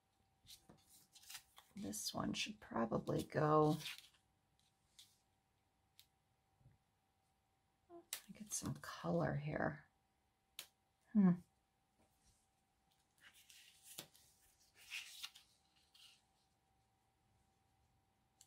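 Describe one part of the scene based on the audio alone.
Paper cards rustle and slide across a mat.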